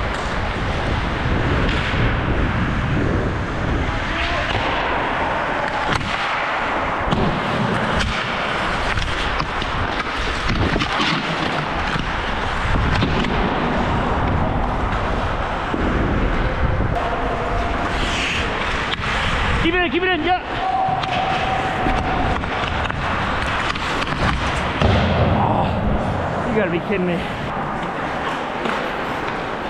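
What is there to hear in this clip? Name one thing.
Ice skates scrape and carve across the ice.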